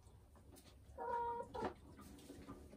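A hen clucks softly close by.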